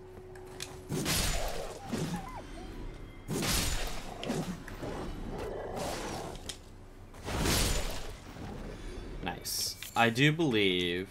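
Wolves snarl and growl in a fight.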